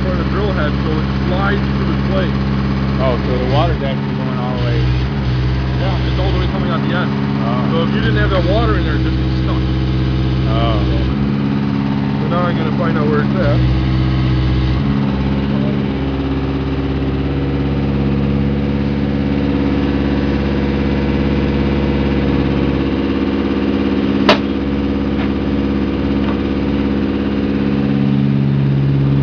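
A drilling machine's engine runs loudly nearby with a steady droning hum.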